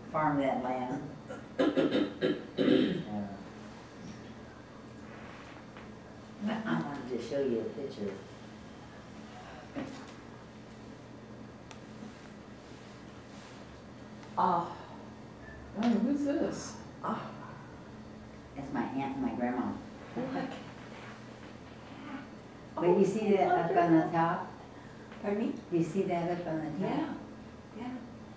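An elderly woman talks calmly close by.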